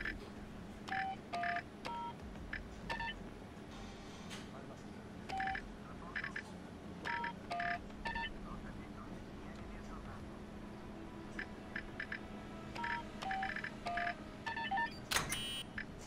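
Keypad buttons beep with short electronic tones, one after another.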